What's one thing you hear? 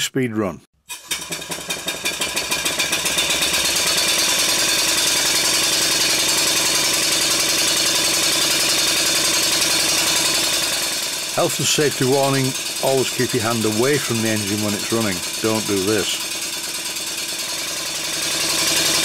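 A small steam engine runs with a rapid, steady chuffing hiss.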